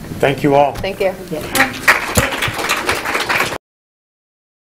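An audience claps.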